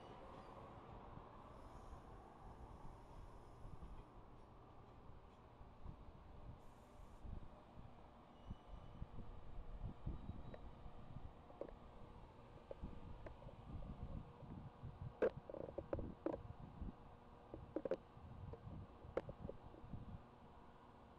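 A train rolls past close by with a deep rumble.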